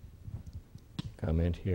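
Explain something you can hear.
An older man speaks with animation.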